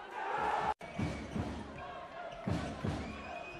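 A basketball thuds as it is dribbled on the court.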